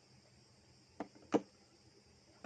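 A phone knocks down onto a wooden table.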